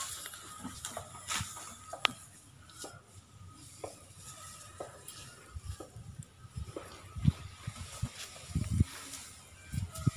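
A baby elephant snuffles and breathes through its trunk close by.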